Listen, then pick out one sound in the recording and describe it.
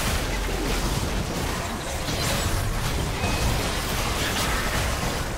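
Spell blasts and clashing effects from a video game fight crackle and whoosh throughout.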